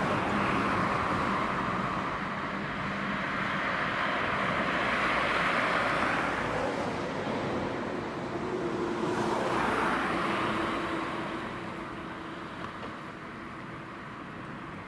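Cars drive past close by, their tyres hissing on the road.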